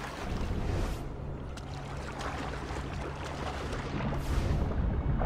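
Deep water rumbles and swirls underwater.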